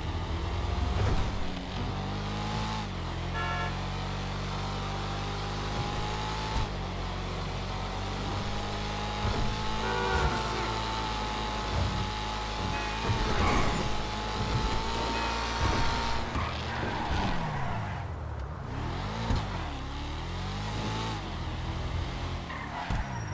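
A car engine roars steadily as it drives along, shifting gears.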